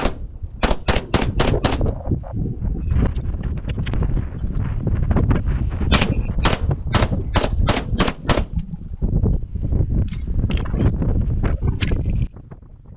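A rifle fires shots in quick bursts outdoors.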